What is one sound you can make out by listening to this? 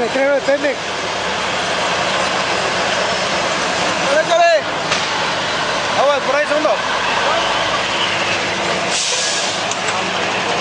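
A large truck engine rumbles steadily nearby.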